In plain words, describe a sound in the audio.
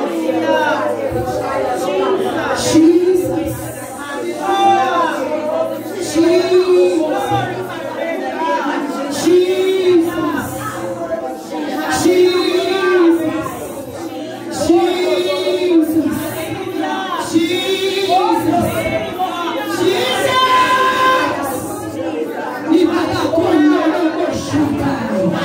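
A crowd of people pray aloud together.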